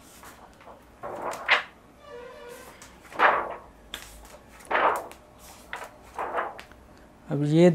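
Stiff album pages flip over with soft swishes.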